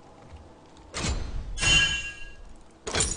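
A video game menu opens with a sharp interface click.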